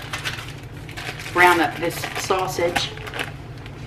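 A plastic wrapper crinkles in someone's hands.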